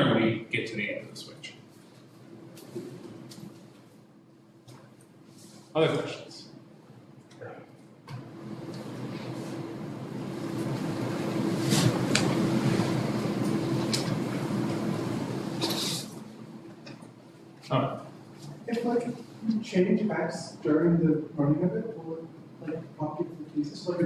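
A young man lectures calmly.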